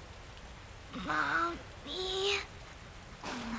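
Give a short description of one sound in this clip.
A young girl asks softly.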